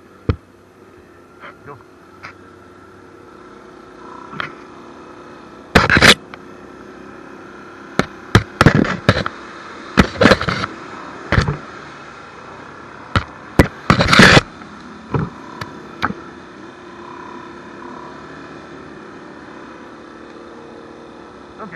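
An off-road quad engine drones steadily.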